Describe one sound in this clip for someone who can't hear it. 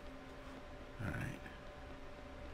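An older man speaks briefly into a headset microphone.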